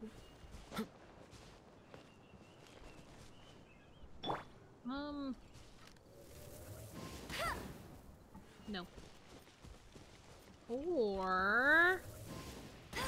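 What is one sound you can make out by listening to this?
A young man speaks casually into a microphone.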